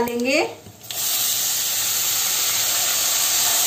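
Sprouts pour into hot oil with a loud hiss.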